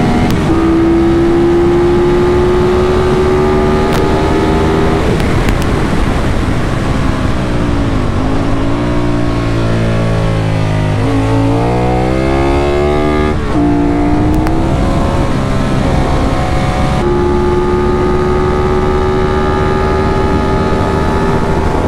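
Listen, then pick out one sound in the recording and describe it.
A motorcycle engine roars loudly at high revs, close by.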